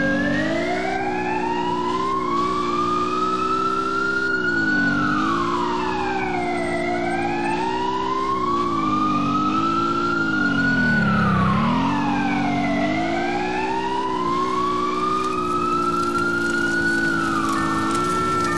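A siren wails, rising and falling slowly.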